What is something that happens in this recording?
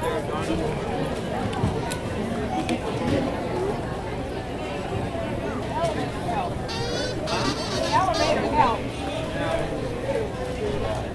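A busy crowd murmurs outdoors.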